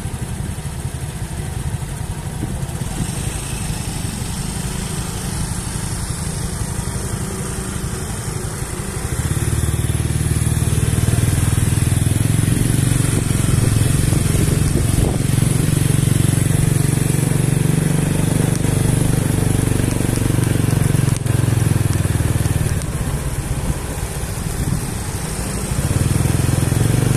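A motor scooter engine idles and then hums as the scooter rides off and comes back.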